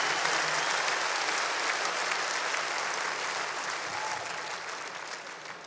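A large audience applauds in a big echoing hall, slowly fading.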